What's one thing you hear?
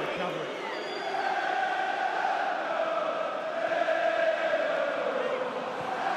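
A large stadium crowd sings and chants loudly.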